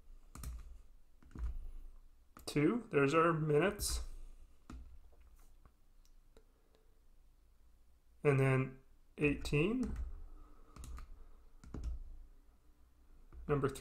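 Calculator keys click softly as they are pressed.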